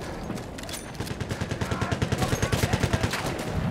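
A gun fires rapidly in a fast rattling burst.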